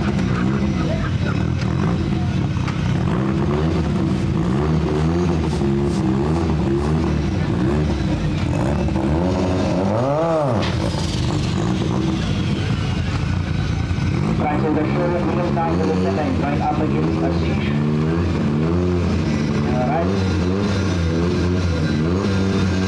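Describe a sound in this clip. A car engine idles with a loud, rough, burbling rumble and revs up and down.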